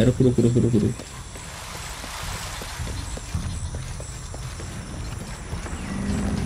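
Footsteps run over stone and earth.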